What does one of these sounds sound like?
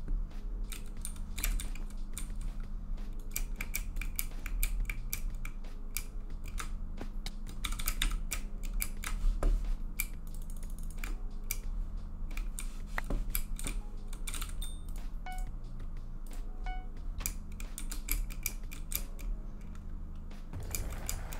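Blocks are placed with quick, soft clicks, one after another.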